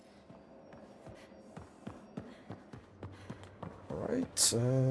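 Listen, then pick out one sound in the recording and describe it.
Footsteps thud quickly on a metal floor.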